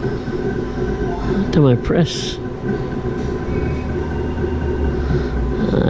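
A gaming machine plays electronic chimes and jingles.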